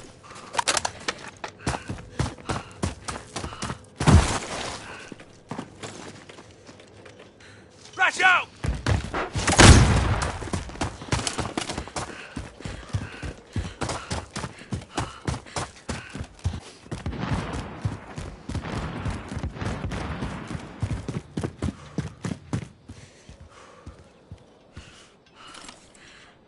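Footsteps run quickly over gravel and hard ground.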